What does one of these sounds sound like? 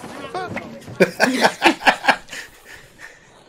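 A young woman laughs in short bursts close by.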